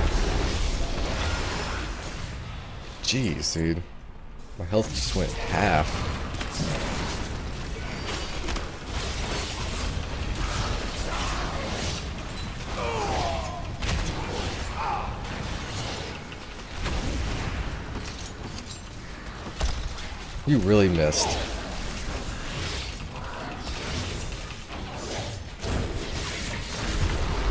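Game spell effects crackle and boom.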